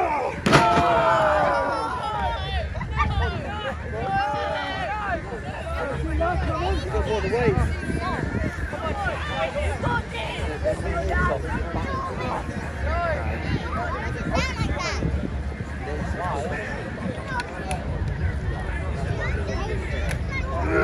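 A crowd of children and adults cheers and shouts outdoors.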